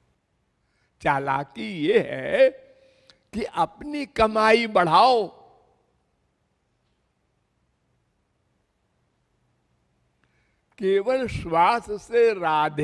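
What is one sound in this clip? An elderly man speaks with animation into a microphone, in bursts with pauses.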